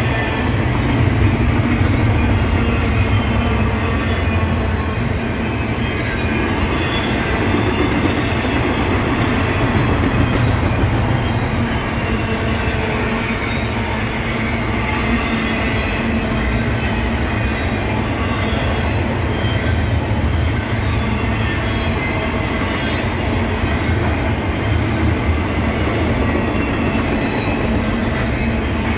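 A long freight train rumbles steadily past nearby.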